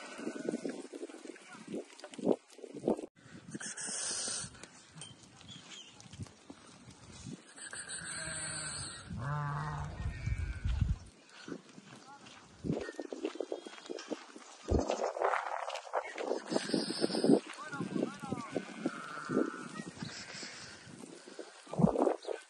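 Many hooves patter on dry ground as sheep walk.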